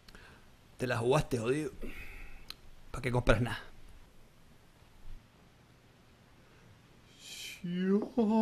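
A man speaks calmly at close range.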